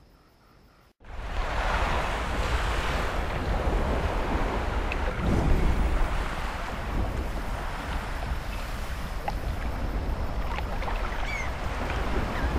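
Waves wash steadily onto a shore.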